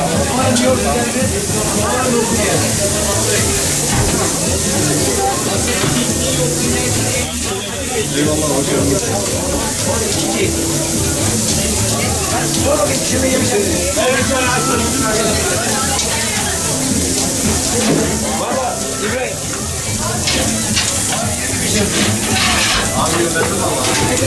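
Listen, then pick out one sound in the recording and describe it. Metal tongs clink and scrape against a grill grate.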